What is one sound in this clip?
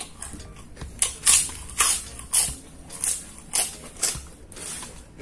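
A man chews food loudly and wetly, close to the microphone.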